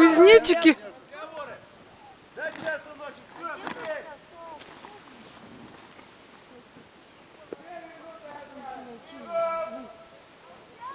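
Young girls talk and chatter close by.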